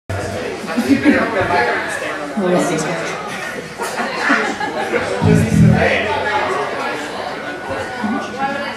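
A woman sings into a microphone over loudspeakers.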